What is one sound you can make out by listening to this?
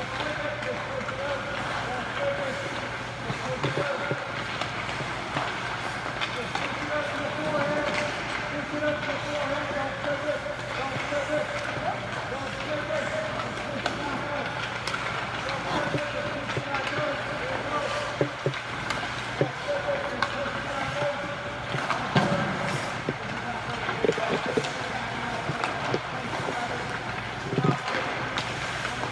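Skate blades scrape and hiss across ice.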